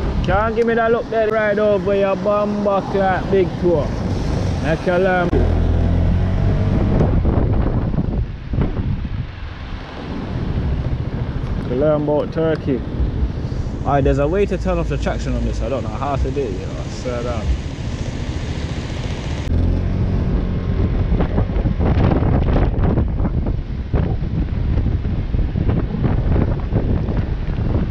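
A scooter engine hums and revs while riding.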